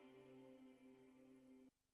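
Young performers sing softly through microphones.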